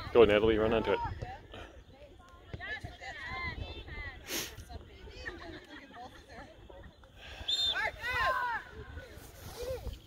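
Young women and spectators shout across an open field outdoors.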